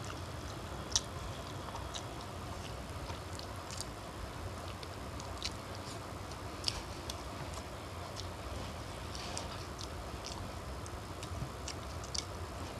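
A plate clinks on a table.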